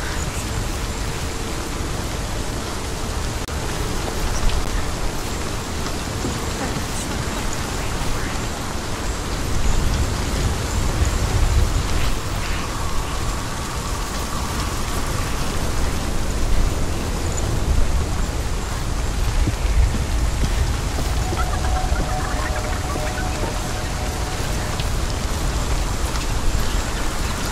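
Footsteps run over soft ground and wooden boards.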